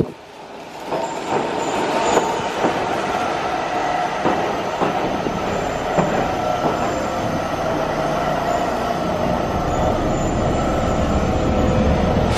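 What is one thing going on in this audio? A train's brakes squeal as it slows.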